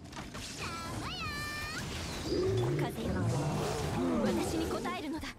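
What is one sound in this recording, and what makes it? Magic blasts crackle and whoosh in quick bursts.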